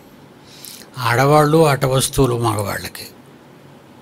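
An elderly man speaks with emphasis into a close microphone.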